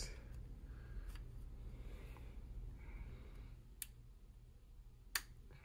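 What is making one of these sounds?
A small tool clicks against a metal part.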